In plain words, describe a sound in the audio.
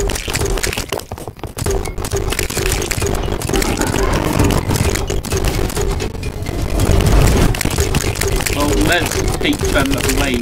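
Rapid game weapon shots fire and crackle.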